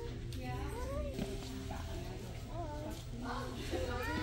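A young child speaks nearby.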